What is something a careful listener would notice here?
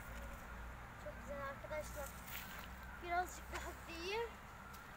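A young boy's voice calls out nearby outdoors.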